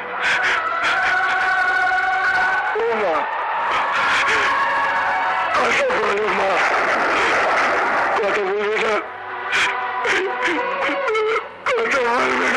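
A man sobs and cries out in anguish.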